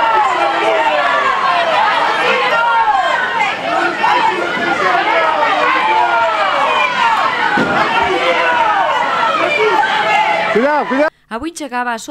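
A crowd of men and women shouts and chants loudly outdoors.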